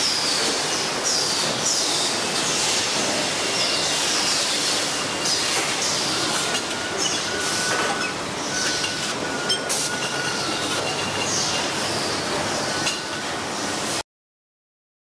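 Factory machines hum and clatter steadily.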